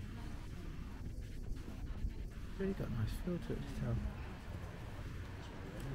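Elderly adults chat quietly nearby outdoors.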